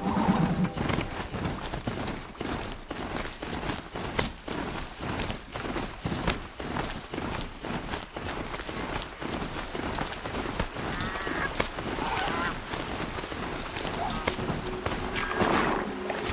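Heavy metallic hooves pound quickly over the ground.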